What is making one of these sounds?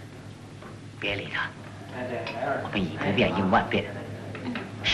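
A man speaks calmly and firmly.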